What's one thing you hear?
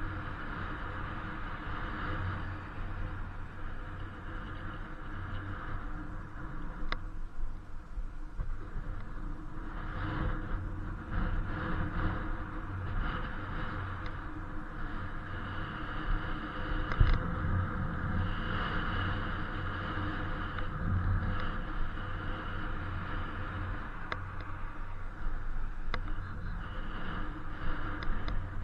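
Wind rumbles and buffets against a moving bicycle.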